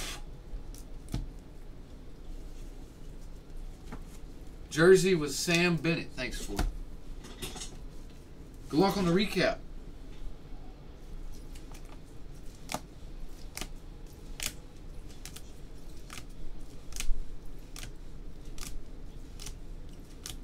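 Plastic card cases click and tap together as they are handled.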